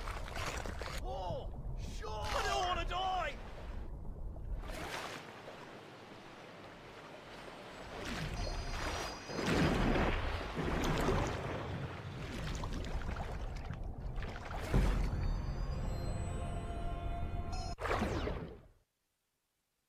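Water splashes and churns as a shark leaps and swims.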